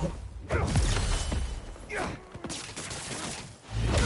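Bodies crash down onto hard ground.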